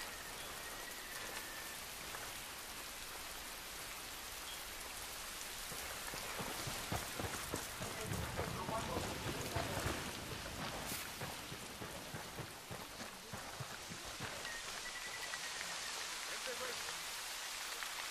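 Footsteps crunch through dense undergrowth.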